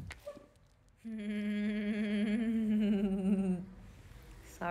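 A young woman hums a high, drawn-out tone close by.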